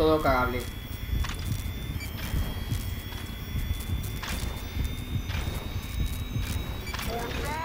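Footsteps crunch softly on dirt.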